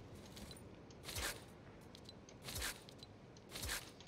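Short game menu sounds whoosh as items are selected.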